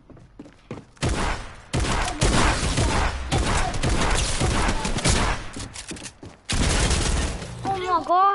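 Gunfire and blasts crack rapidly in a video game.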